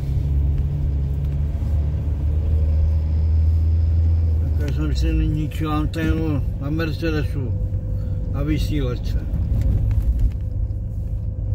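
A car drives along a paved road.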